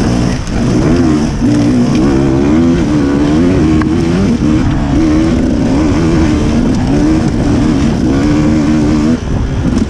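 A dirt bike engine revs loudly and rises and falls close by.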